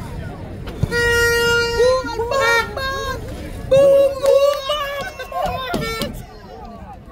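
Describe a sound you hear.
Young men shout to each other across an open field.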